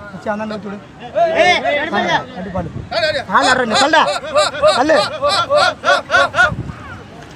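Several men shout and chant loudly in rhythm close by.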